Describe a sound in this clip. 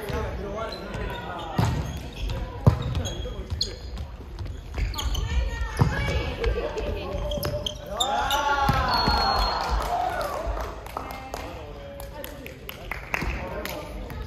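Young men and women shout and call out across a large echoing hall.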